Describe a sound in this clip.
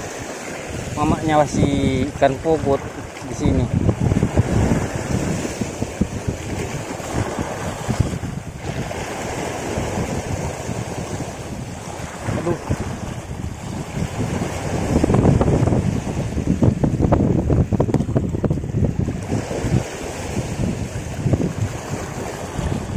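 Waves splash and wash against rocks.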